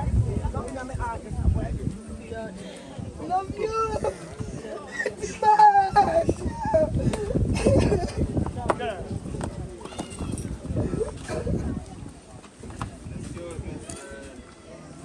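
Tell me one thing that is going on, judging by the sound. Adults in a crowd talk and call out nearby outdoors.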